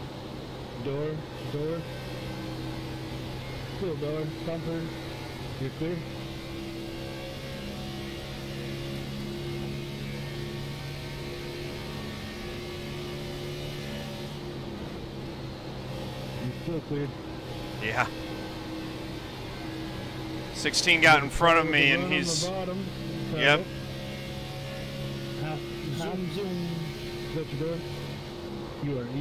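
A race car engine drones steadily at high speed.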